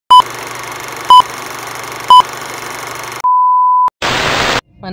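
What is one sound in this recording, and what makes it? Short beeps sound once a second.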